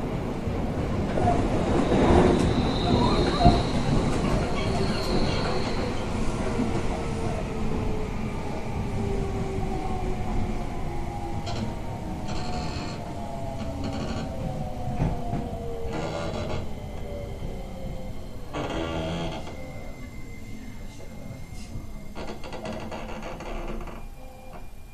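A level crossing bell rings steadily.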